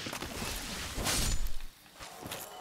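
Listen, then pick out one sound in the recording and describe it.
A sword strikes with a sharp metallic crash.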